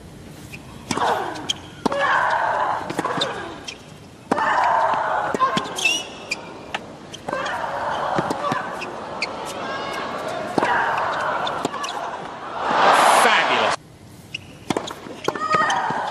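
Tennis balls are struck hard with rackets and bounce on the court.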